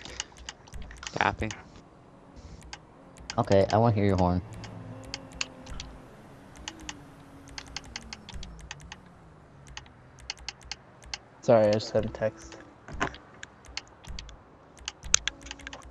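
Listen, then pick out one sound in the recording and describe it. Short game menu clicks tick again and again.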